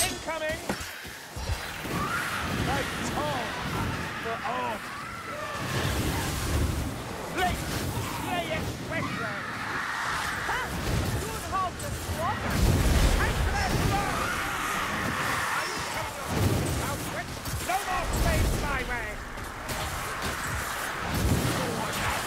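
Fire crackles and roars in bursts.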